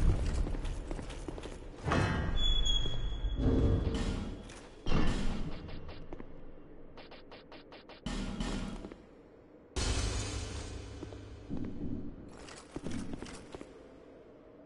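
Heavy armored footsteps clank on stone.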